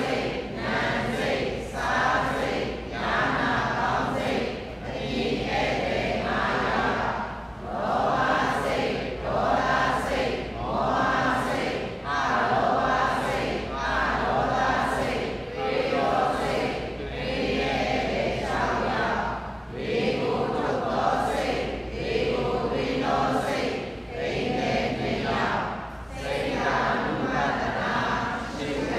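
An elderly man speaks calmly and steadily through a microphone in an echoing hall.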